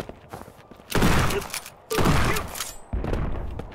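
A shotgun fires loudly.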